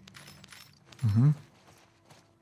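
A man close to a microphone makes a short drawn-out vocal sound.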